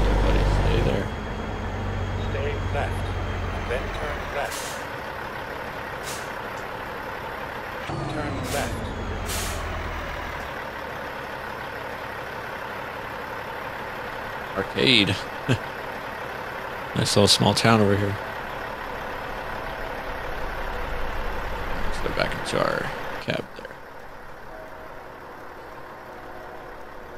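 A truck engine rumbles, swelling and easing off at times.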